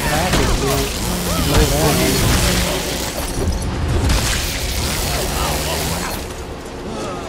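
A chainsaw roars loudly as it tears into flesh.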